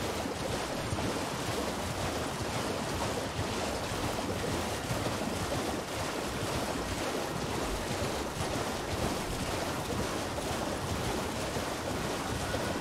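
A creature splashes quickly through shallow water.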